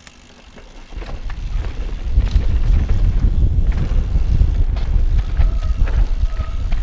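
Wind buffets loudly outdoors as a bike speeds downhill.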